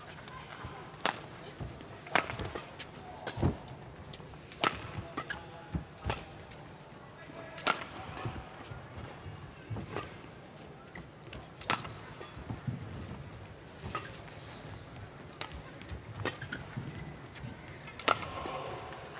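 Rackets strike a shuttlecock in quick sharp smacks during a fast rally.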